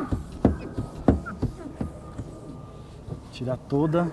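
A cloth rubs and squeaks against a car window.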